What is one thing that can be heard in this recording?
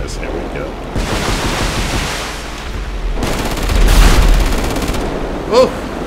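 Heavy gunfire rattles in long bursts.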